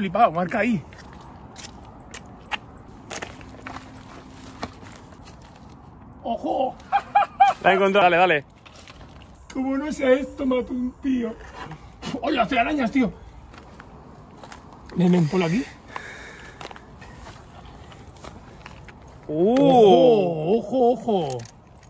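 A man talks with animation close by, outdoors.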